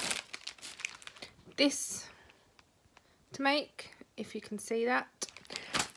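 Plastic wrapping crinkles in a hand.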